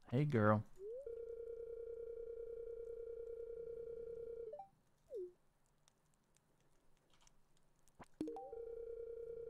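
A game plays a steady electronic hum.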